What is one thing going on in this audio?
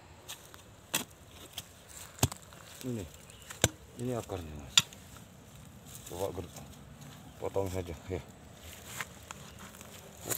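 A blade scrapes and chops into dry soil.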